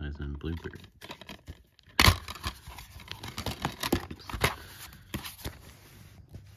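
A plastic case clicks and snaps as it is opened.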